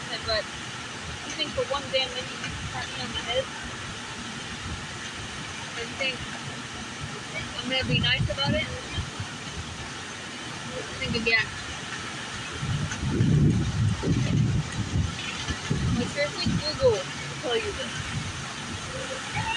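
A young woman reads aloud with passion outdoors, her voice a little distant.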